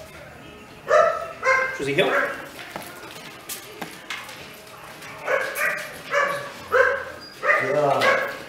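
A man gives a dog commands in a firm, upbeat voice nearby.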